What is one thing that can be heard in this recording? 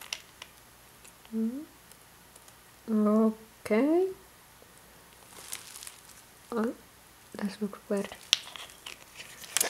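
A plastic cap clicks open and shut.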